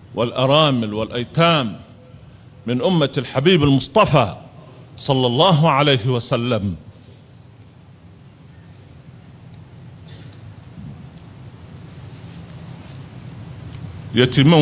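An elderly man chants loudly into a microphone, heard through loudspeakers with pauses between phrases.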